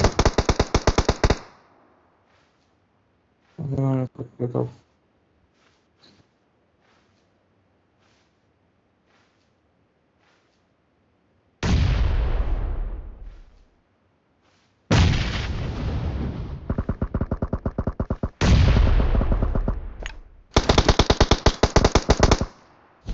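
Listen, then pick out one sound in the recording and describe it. Automatic rifle fire rattles in rapid bursts.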